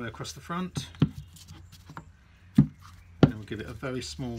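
A heavy stone block knocks onto a wooden base.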